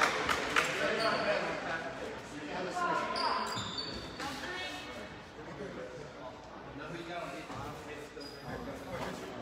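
Men and boys talk nearby in the huddle.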